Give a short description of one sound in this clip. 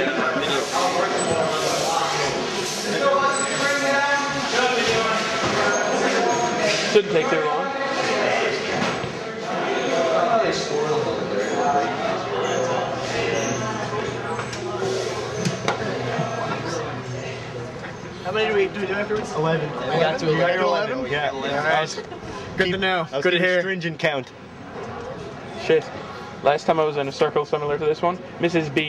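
Several men talk and chatter nearby in a noisy, lively group.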